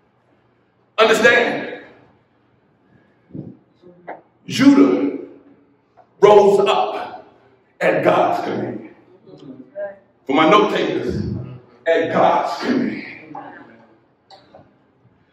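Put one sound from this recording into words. A man preaches with passion into a microphone, in bursts that ring out in an echoing room.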